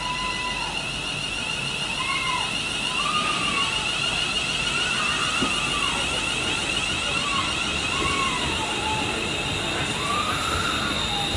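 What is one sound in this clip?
Train wheels squeal on the rails in short rising and falling whines.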